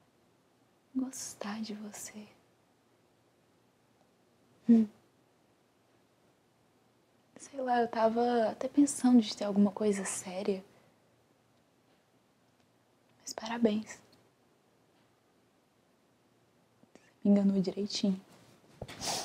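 A young woman speaks softly and close by, in short phrases with pauses.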